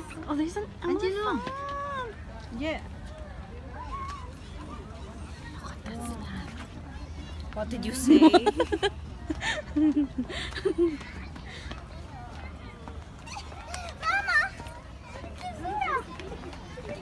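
A young woman talks and laughs close by, with animation.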